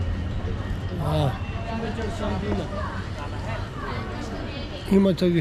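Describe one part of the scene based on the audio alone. A man speaks casually close by, outdoors.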